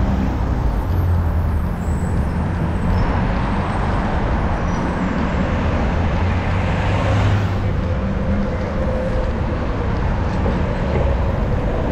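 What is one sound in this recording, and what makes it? Traffic rumbles along a busy road nearby.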